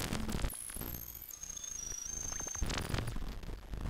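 A patch cable plug clicks into a socket.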